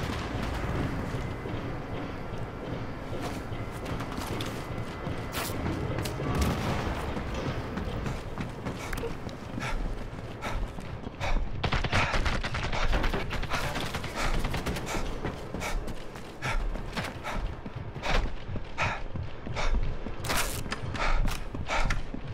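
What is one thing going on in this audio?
Footsteps thud quickly across wooden floors and metal stairs.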